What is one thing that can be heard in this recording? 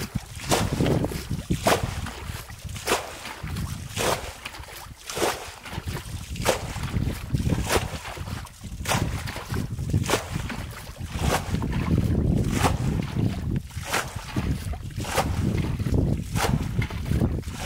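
A bucket scoops shallow muddy water and splashes it out.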